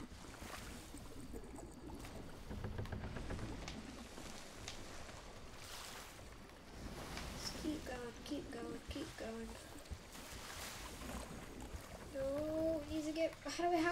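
Water sloshes in a bucket.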